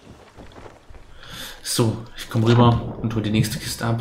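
Water splashes as a body plunges in.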